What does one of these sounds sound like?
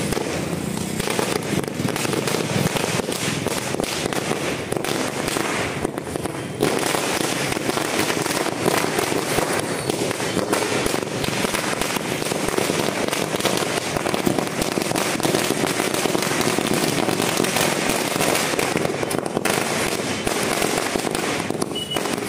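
Firecrackers crackle and pop.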